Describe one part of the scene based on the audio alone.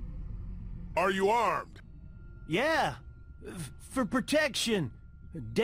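A man speaks slowly in a low voice.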